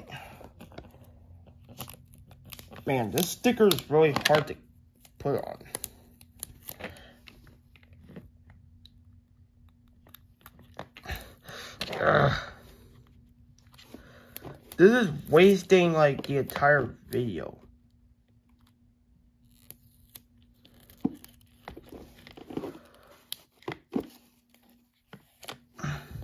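A sticker peels off its backing with a soft crackle.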